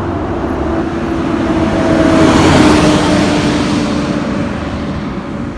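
A bus passes close by with a loud rising and fading roar.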